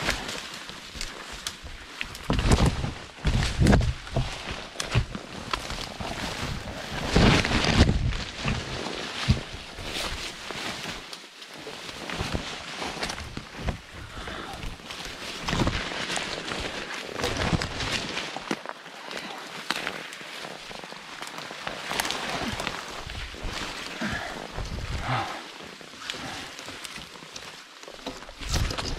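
Leaves and branches rustle and scrape against a nylon jacket as someone pushes through dense brush.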